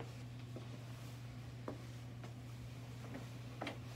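A chair thumps softly as a man sits down in it.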